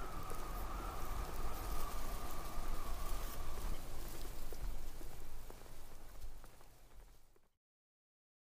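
Tyres hum steadily on a smooth road as a car drives along.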